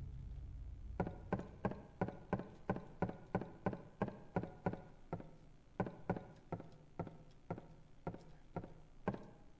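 Footsteps run across a hard floor.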